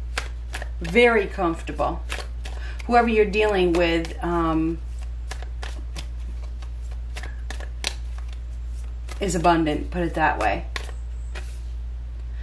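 Playing cards shuffle and riffle softly between hands.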